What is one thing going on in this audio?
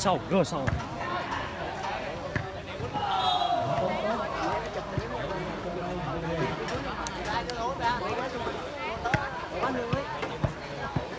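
A ball is struck with sharp thuds.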